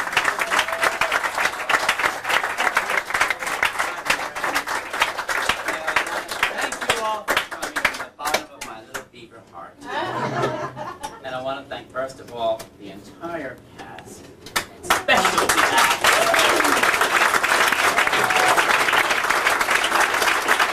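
An audience claps and cheers loudly in a room.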